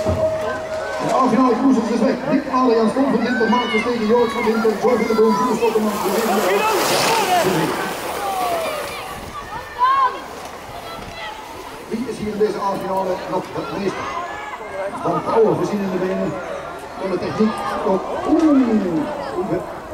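A crowd cheers and shouts loudly outdoors.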